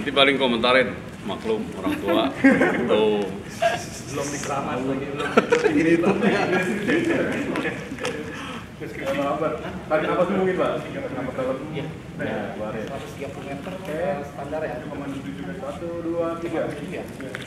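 A middle-aged man speaks with animation close by, outdoors.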